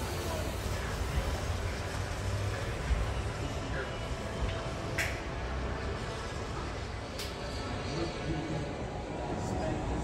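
A monorail train glides into a station with a low hum.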